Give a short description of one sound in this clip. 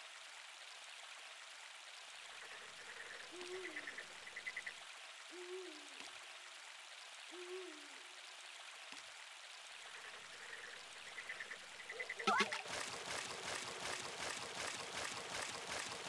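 A stream of water flows steadily.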